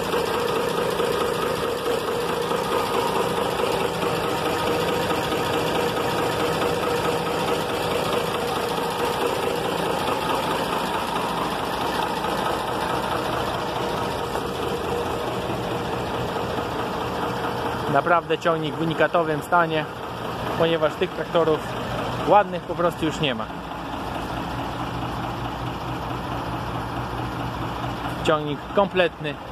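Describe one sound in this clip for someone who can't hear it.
A tractor engine idles with a steady, low drone.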